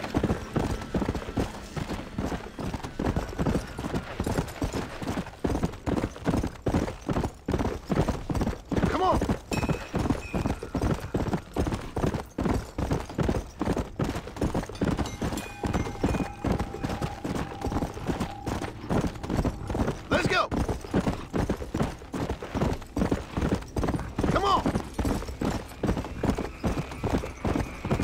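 A horse gallops with rapid, steady hoofbeats.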